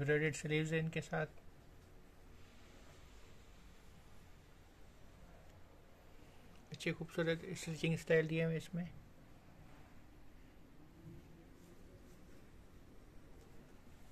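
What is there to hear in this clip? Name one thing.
Cloth rustles softly as hands handle it.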